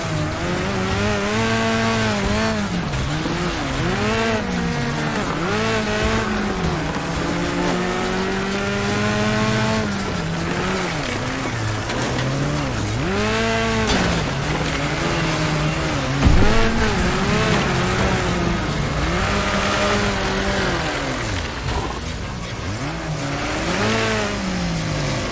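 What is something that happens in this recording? A buggy engine revs up and down, rising and falling in pitch.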